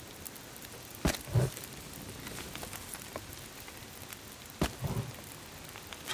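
Logs thud as they drop onto a fire.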